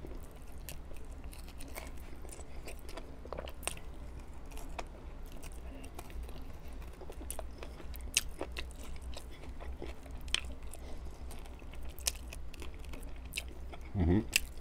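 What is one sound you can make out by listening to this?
A man chews and bites into chicken wings close to a microphone.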